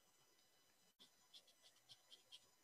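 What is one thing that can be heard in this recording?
A paintbrush dabs and taps lightly on paper.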